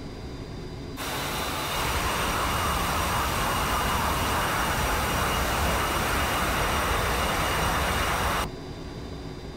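A jet plane's engines roar and hiss loudly.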